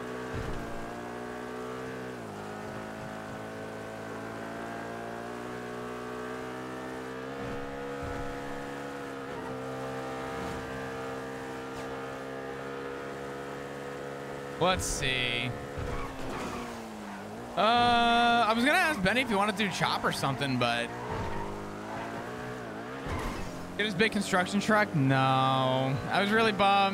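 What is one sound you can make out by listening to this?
A car engine roars steadily at high revs.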